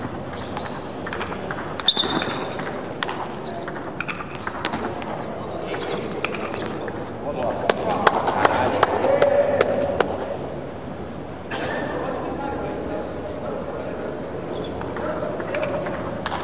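Bouncing balls clatter faintly around a large echoing hall.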